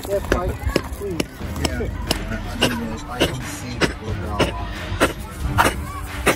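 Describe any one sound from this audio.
Footsteps crunch on loose stones at a steady pace.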